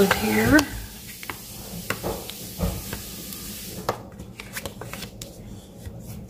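A bone folder scrapes and taps across card stock close by.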